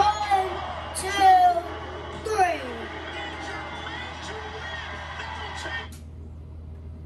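Music plays from a television speaker.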